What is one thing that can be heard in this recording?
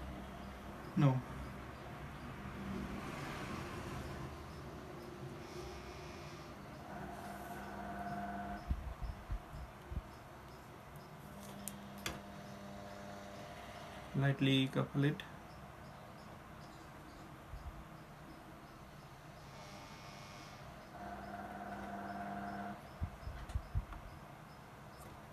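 Hands knock and rattle a small metal device.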